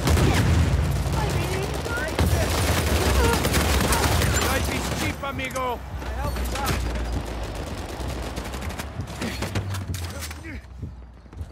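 Gunfire rattles rapidly in bursts.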